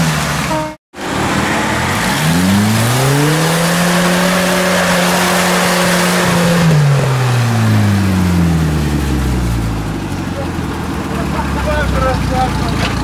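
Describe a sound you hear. An off-road vehicle's engine revs hard, rising and falling in pitch, as it pushes through deep mud.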